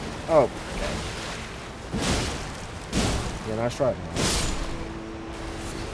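Heavy blows and slashes clash in a game fight.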